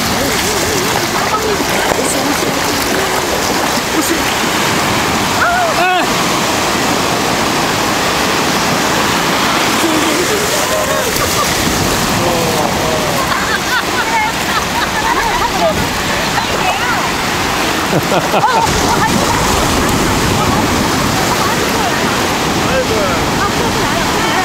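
Waves wash steadily onto the shore outdoors in wind.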